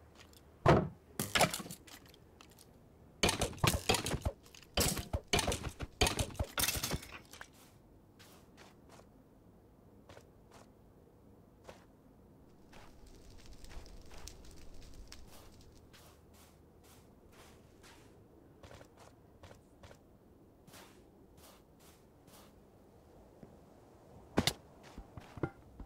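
Footsteps tap steadily on hard stone.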